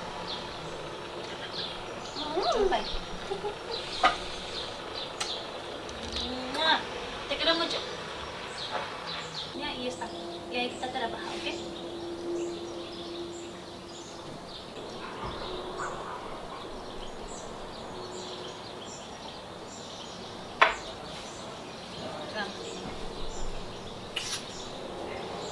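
A young woman talks softly and close by.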